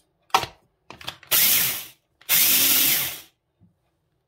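A small food processor whirs in short loud bursts.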